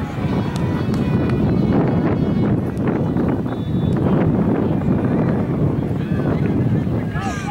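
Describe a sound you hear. Spectators chatter and call out at a distance outdoors.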